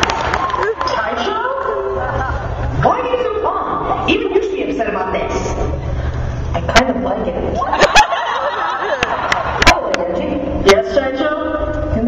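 Young women speak with animation through loudspeakers in a large hall.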